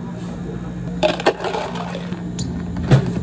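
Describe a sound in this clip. Ice cubes rattle and clatter into a plastic cup.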